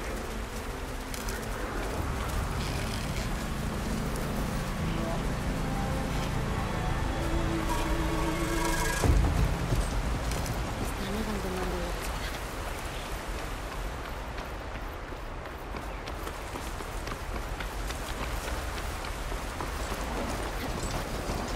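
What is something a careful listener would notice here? Footsteps rustle through tall grass and brush.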